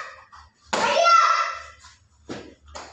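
A young boy shouts loudly.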